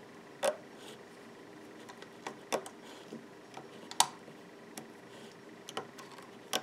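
A plastic hook clicks and snaps rubber bands against plastic pegs.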